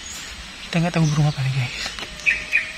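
A bird calls with a few low, hooting notes close by.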